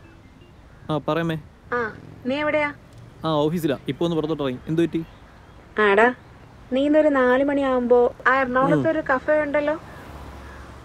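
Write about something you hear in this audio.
A young man talks calmly on a phone, close by.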